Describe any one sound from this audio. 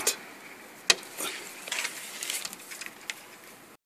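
Window blinds rustle and clatter against each other.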